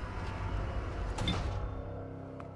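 A book is set down with a soft thud inside a metal compartment.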